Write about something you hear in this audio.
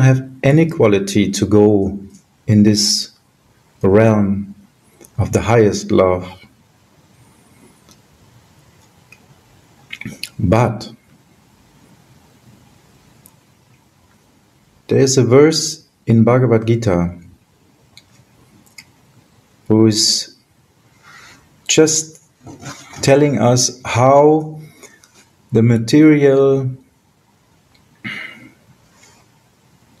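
A middle-aged man speaks calmly in short bursts over an online call.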